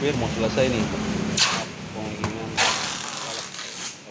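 Packing tape rips loudly off a roll.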